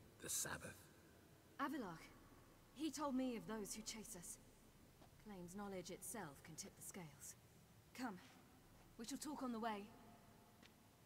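A young woman speaks calmly and closely.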